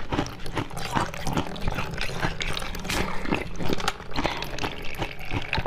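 A young woman bites and chews crisp jelly close to a microphone, with sharp crunching and squishing sounds.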